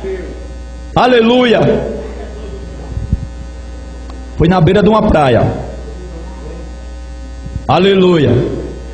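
A man speaks loudly and with emphasis through a microphone and loudspeakers, in bursts with pauses.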